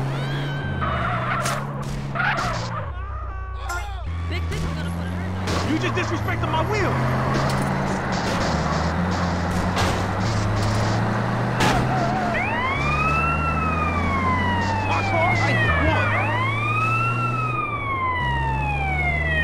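An ambulance siren wails, rising and falling.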